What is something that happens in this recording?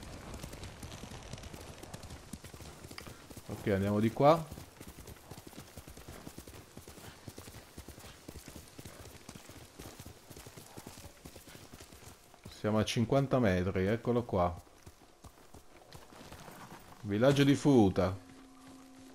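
A horse gallops over soft ground with thudding hoofbeats.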